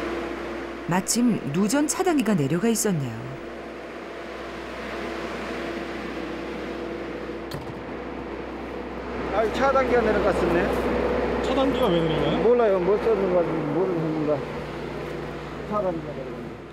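A middle-aged man speaks nearby in short, casual phrases.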